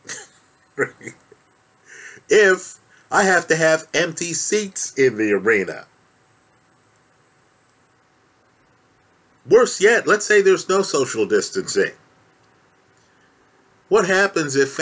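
A man talks calmly and close to a microphone, in bursts with pauses.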